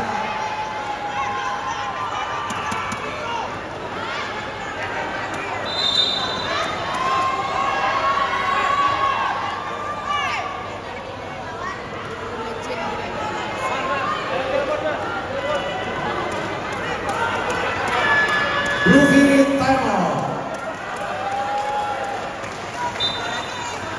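A large crowd chatters and shouts in a large echoing hall.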